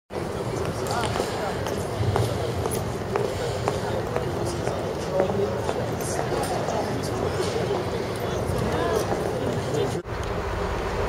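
City traffic and street bustle hum outdoors.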